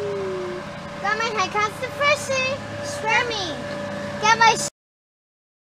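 A young girl talks in a high, excited voice close by.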